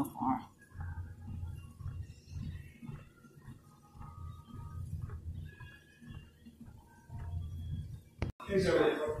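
A treadmill hums and whirs steadily.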